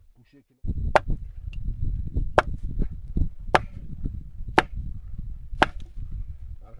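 A pickaxe strikes rocky ground several times.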